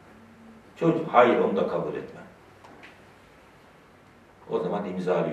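A middle-aged man speaks calmly and slowly into a close microphone.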